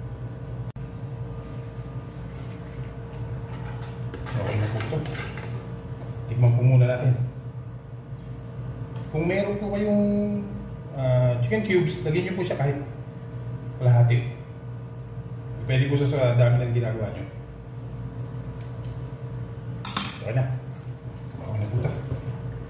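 A thick sauce bubbles and sizzles gently in a pan.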